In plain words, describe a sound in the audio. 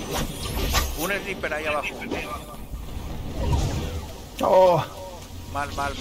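A middle-aged man exclaims with animation into a microphone.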